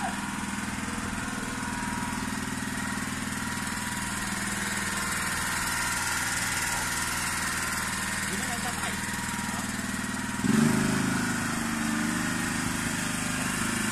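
A small diesel engine idles steadily nearby.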